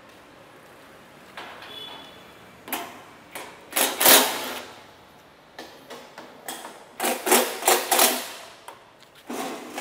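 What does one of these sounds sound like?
A metal machine rattles and whirs as a man turns its hand crank.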